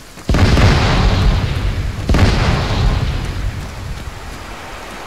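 Explosions boom loudly and rumble away.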